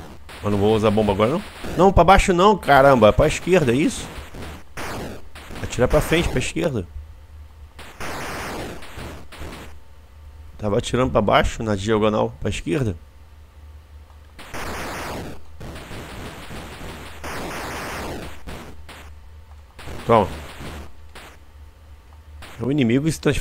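Retro video game sound effects bleep and zap.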